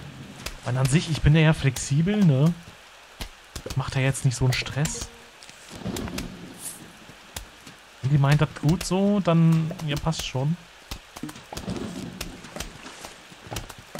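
Cartoonish plants fire small popping shots again and again.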